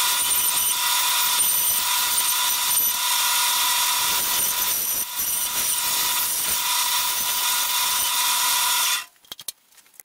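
A band saw whines steadily as it cuts through wood.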